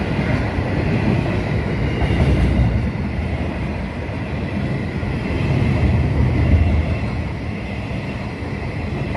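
A long freight train rumbles loudly past at close range.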